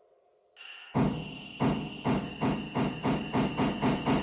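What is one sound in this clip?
A steam locomotive chuffs in a steady rhythm.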